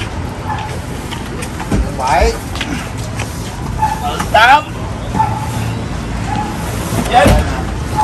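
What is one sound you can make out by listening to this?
Cardboard boxes thump and scrape as they are loaded onto a truck bed.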